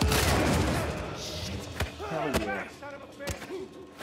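A man shouts in alarm.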